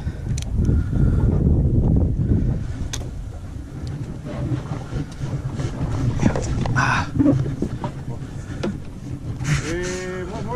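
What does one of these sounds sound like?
Waves lap against a boat's hull.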